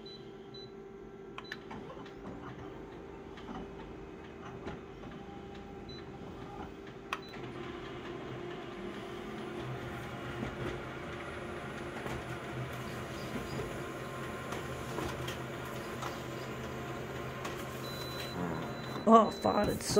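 A copier hums and whirs as it scans and prints.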